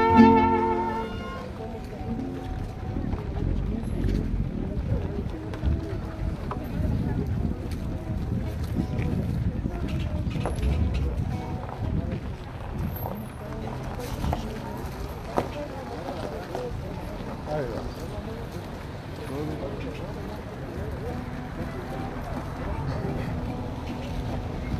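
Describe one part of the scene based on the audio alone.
Footsteps shuffle on a paved street.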